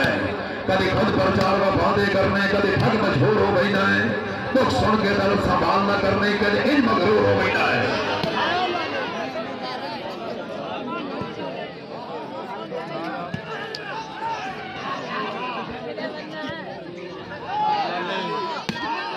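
Men shout to each other during play.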